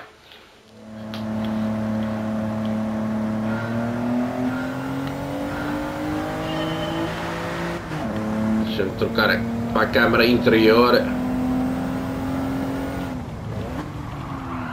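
A car engine hums steadily, rising slowly in pitch as the car speeds up.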